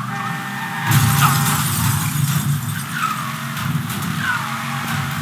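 Metal scrapes and screeches against concrete.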